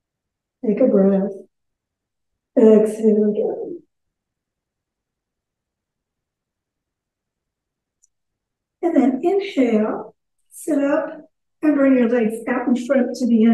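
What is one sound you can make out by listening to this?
An elderly woman speaks calmly and slowly through a microphone, pausing between phrases.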